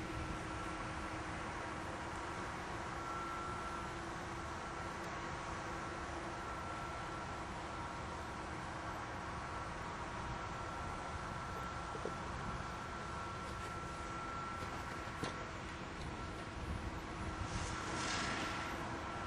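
Wind blows across an open field.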